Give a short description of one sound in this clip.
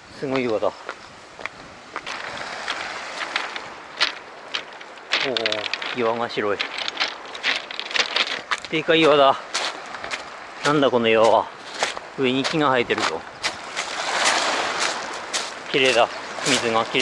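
Small waves lap and wash over a pebble shore.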